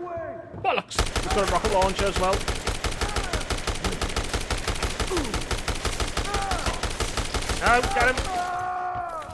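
A rapid burst of machine gun fire rattles on and on.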